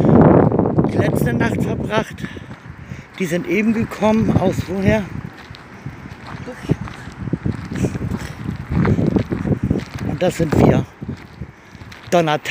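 Footsteps crunch on gravel outdoors.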